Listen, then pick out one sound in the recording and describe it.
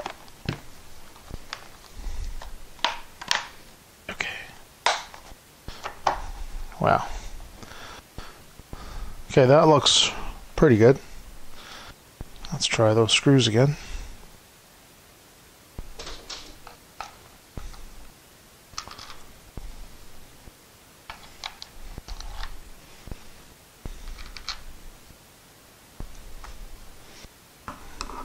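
Hard plastic parts click and rattle as they are handled.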